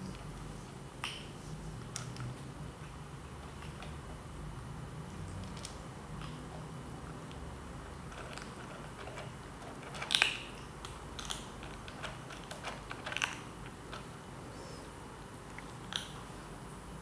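Food pellets click against a plastic bowl.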